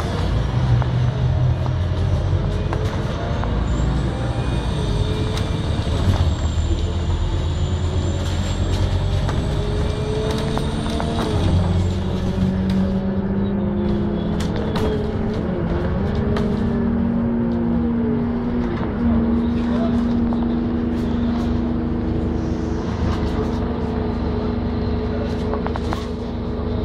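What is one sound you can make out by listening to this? Wheels rattle and knock over the road.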